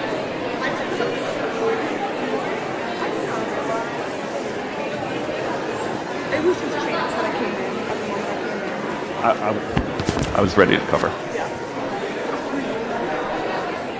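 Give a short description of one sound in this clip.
A large crowd chatters and murmurs in a big echoing hall.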